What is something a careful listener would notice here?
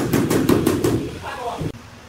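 A hand tool taps rapidly on a ceramic floor tile.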